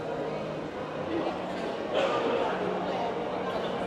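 A crowd of people chatter in a busy, echoing hall.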